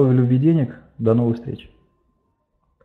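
A middle-aged man speaks calmly through a microphone over an online call.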